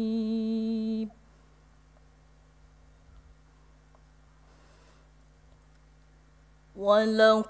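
A young woman sings a long, held melodic recitation into a microphone, with pauses between phrases.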